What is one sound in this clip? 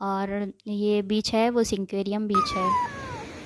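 A little girl speaks close by in a sing-song voice.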